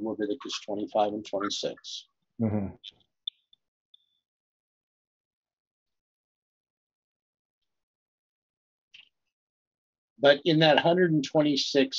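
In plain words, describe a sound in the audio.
An elderly man speaks calmly and close into a microphone, pausing between phrases.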